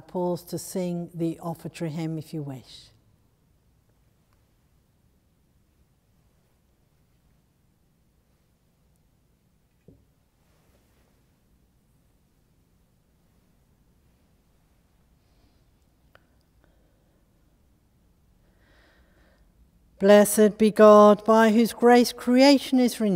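An elderly woman speaks slowly and solemnly through a microphone in a large echoing room.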